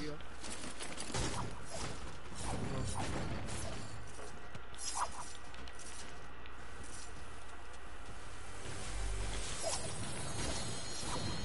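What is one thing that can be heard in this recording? A pickaxe strikes a wall with repeated sharp knocks.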